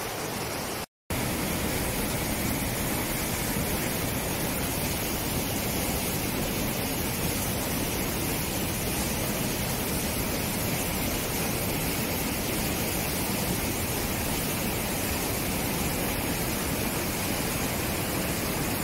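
A waterfall roars loudly close by.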